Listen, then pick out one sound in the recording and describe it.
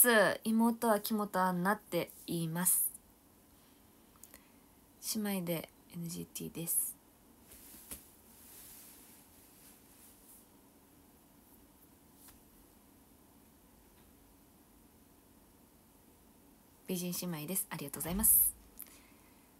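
A young woman talks animatedly and close up into a microphone, in short bursts with pauses.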